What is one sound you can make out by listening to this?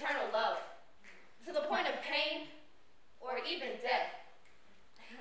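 Young women speak together in unison, in short phrases.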